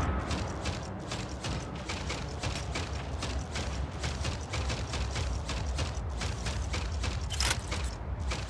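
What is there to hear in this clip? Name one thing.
Video game gunfire rattles.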